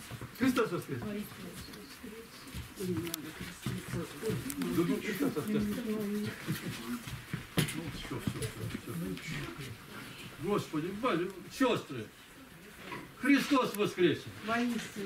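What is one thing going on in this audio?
A man chants in a low voice nearby.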